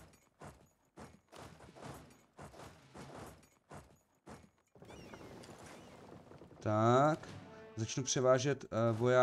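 A man talks casually and with growing animation into a close microphone.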